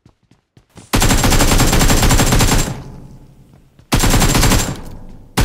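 Rapid gunfire bursts out loudly in two long volleys.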